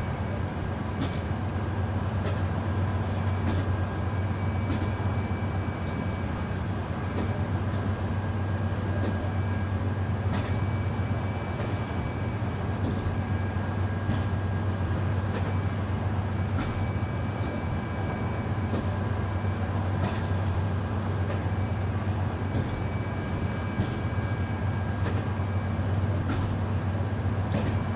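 Train wheels click over rail joints at an even pace.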